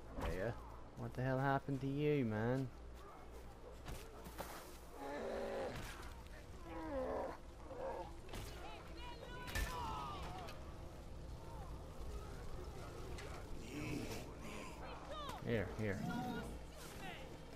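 A bear growls and roars loudly.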